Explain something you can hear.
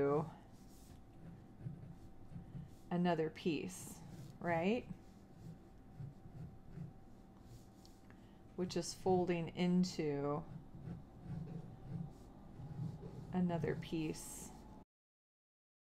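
A pencil scratches softly on paper.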